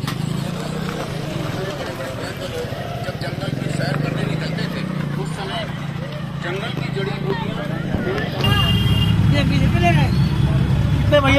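A motorcycle engine idles and runs close by.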